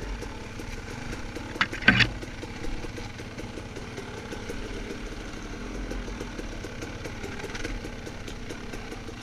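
Dry leaves and twigs crunch under tyres.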